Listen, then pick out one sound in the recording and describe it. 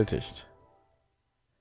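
A short electronic chime rings out and fades.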